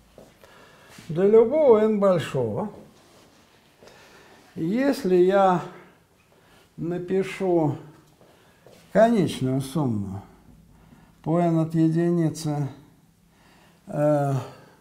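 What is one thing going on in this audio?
An elderly man speaks in a slow, measured lecturing voice, in short bursts with pauses.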